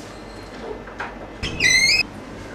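A metal door latch clicks and rattles.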